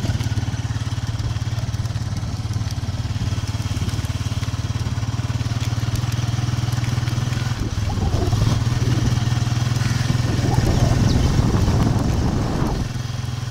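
A motorcycle engine putters steadily close by.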